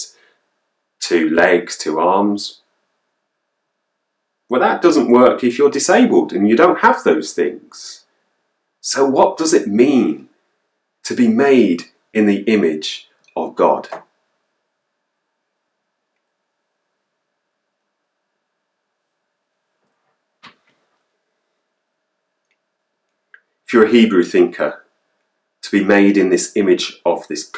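A man talks calmly and closely into a microphone, with pauses.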